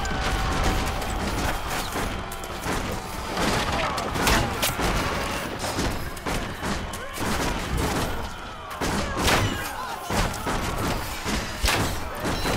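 Fighters shout and clash in a noisy battle.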